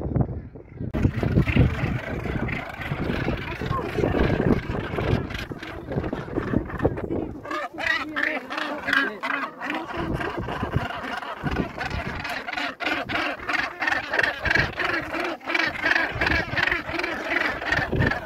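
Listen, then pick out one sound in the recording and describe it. A large colony of seabirds calls with harsh, grating cries.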